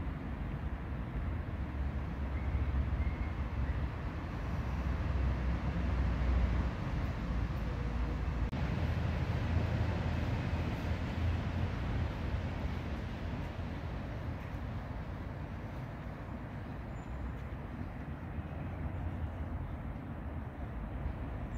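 Wind blusters steadily outdoors, rumbling against the microphone.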